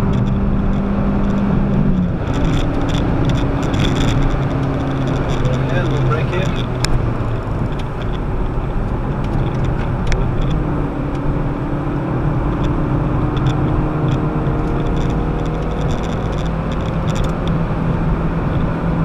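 A car engine roars loudly and changes pitch as the driver shifts gears.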